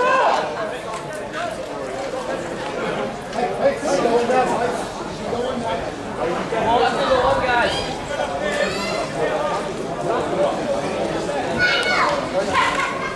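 Young men call out to each other across an open sports field.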